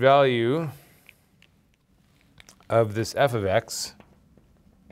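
A man lectures calmly into a close microphone, in short phrases.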